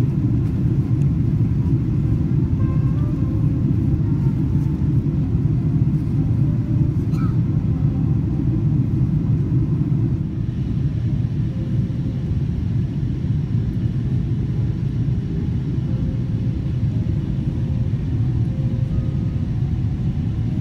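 A jet airliner's engines roar in a steady, deep rumble heard from inside the cabin.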